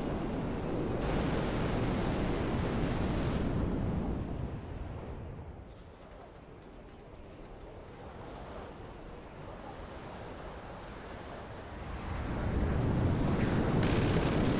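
A jet engine roars steadily, swelling and fading as the aircraft banks.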